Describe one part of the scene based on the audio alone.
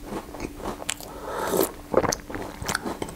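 A young man slurps a drink from a mug.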